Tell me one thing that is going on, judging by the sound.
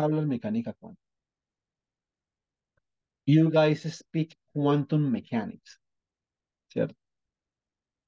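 A man speaks calmly over an online call, in short bursts with long pauses.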